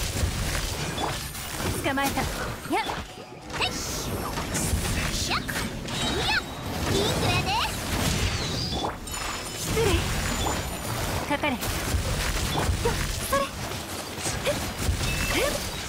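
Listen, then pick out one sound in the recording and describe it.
Magical blasts crackle and boom in quick bursts.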